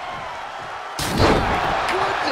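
A table smashes with a loud crash.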